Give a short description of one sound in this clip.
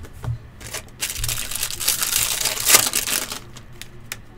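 A foil wrapper crinkles and tears open.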